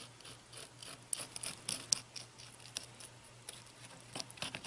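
A knife scrapes scales off a fish with quick rasping strokes.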